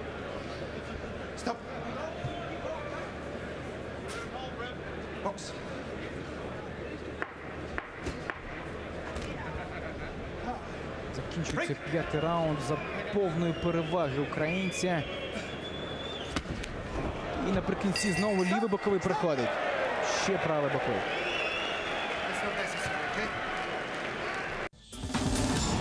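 A large crowd murmurs and cheers in a big hall.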